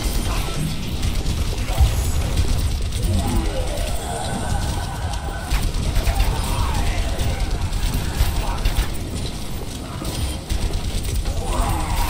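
A weapon fires rapid buzzing energy shots.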